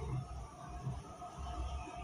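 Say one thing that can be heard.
Oil pours from a bottle into a pan.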